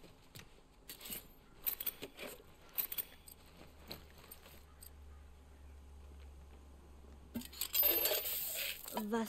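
A man rummages and clicks through items on metal shelves.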